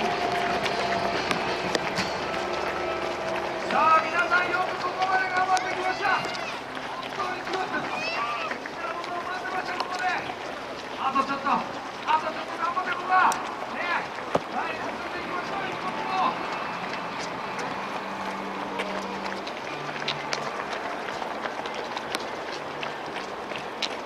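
Many runners' footsteps patter on a paved road.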